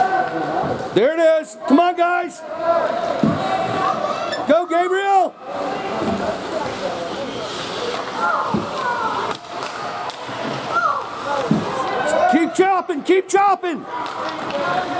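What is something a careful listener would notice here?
Adult spectators shout and cheer loudly nearby in a large echoing rink.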